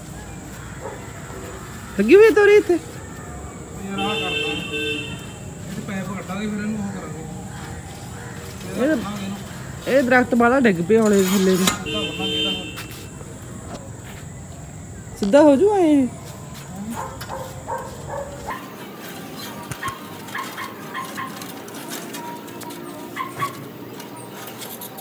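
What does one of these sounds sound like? Leafy branches rustle and swish as they are pulled with a pole.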